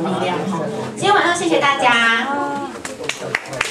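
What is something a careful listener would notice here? A young woman sings loudly through a microphone.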